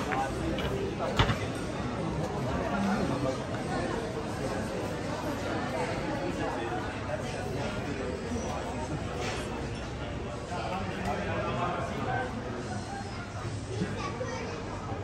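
Many people chat in an indistinct murmur outdoors.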